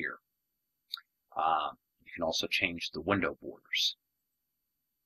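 A young man talks calmly and closely into a microphone.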